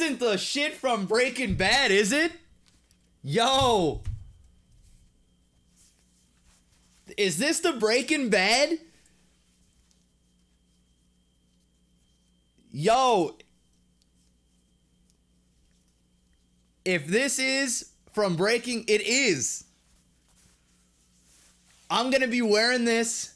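A man speaks loudly and animatedly into a nearby microphone, in bursts with pauses.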